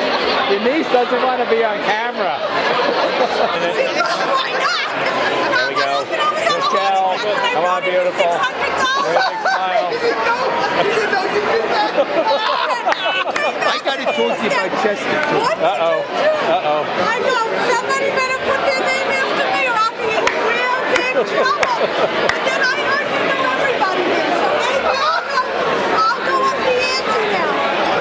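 A crowd of people chatter loudly.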